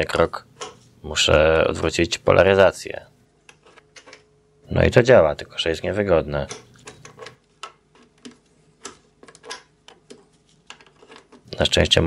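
Plugs click into sockets.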